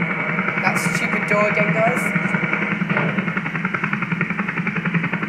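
A helicopter engine roars loudly with rapidly thumping rotor blades.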